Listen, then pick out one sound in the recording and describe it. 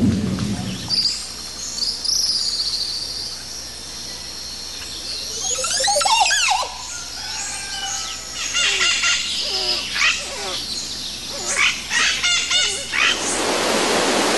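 A bird calls with liquid, gliding whistles.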